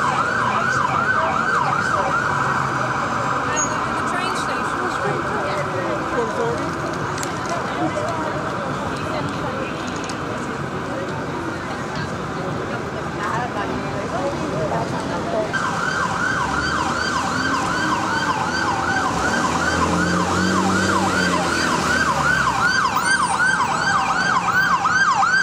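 City traffic rumbles steadily.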